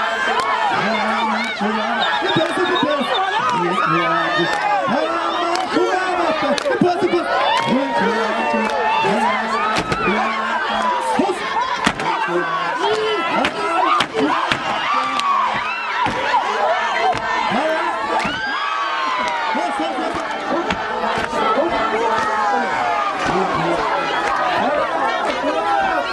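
A large crowd cheers and screams loudly outdoors.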